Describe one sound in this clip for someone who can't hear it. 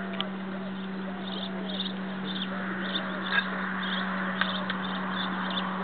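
A Spanish sparrow chirps.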